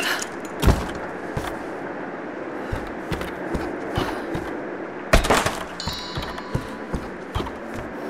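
Footsteps knock on wooden floorboards.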